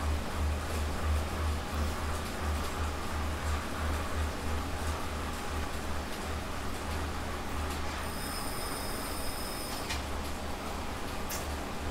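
A stationary bike trainer hums and whirs steadily.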